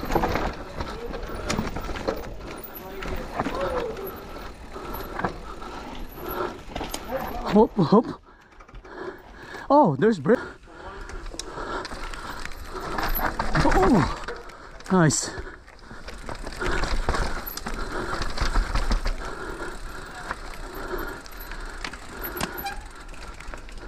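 Bicycle tyres crunch and roll over dirt, roots and rocks.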